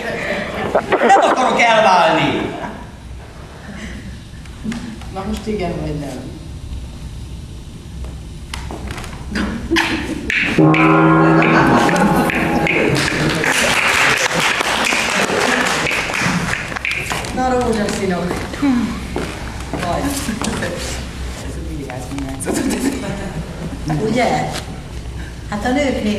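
A woman speaks with feeling on a stage, heard from a distance in a large room.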